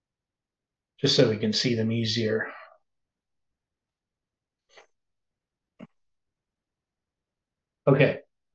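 An elderly man speaks calmly and close to a microphone, in short bursts with long pauses.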